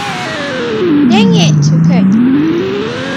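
Video game tyres screech as a car slides sideways.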